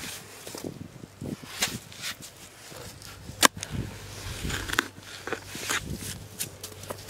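A hoe strikes and breaks up soil.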